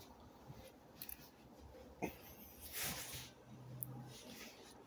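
Clothing rustles and bumps close to the microphone as it is handled.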